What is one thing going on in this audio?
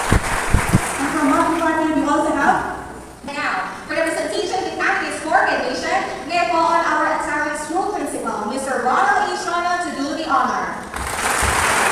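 A man speaks through a loudspeaker, echoing in a large hall.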